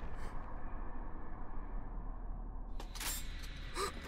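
A young man groans in pain.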